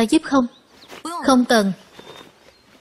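A young woman answers briefly and calmly, close by.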